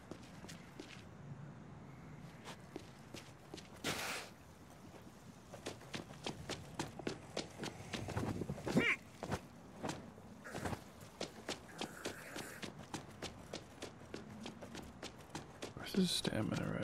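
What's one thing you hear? Footsteps run over pavement.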